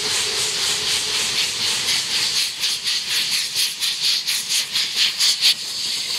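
A steam locomotive chuffs in quick, rhythmic bursts as it approaches.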